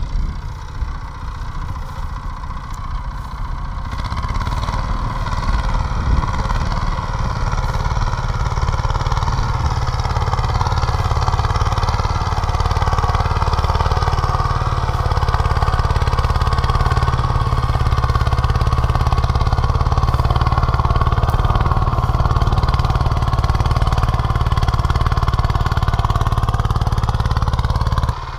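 A small tiller engine chugs steadily nearby.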